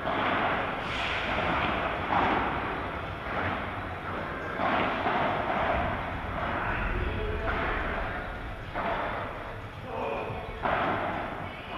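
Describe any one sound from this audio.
Men talk casually to each other across the court.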